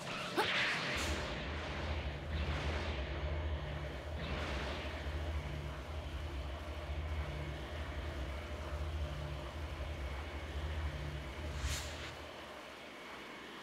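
A loud rushing whoosh of flight roars steadily, then fades.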